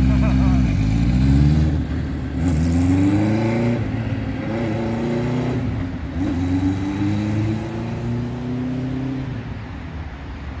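A motorcycle rides away, shifting gears and fading into the distance.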